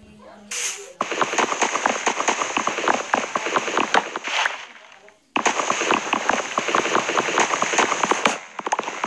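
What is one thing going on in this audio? Rapid knocks chop into a wooden log.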